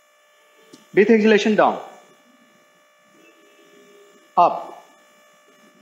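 A man gives instructions in a calm, clear voice nearby.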